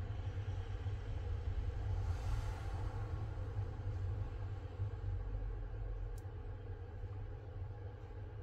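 A cloth rubs softly against a phone's back.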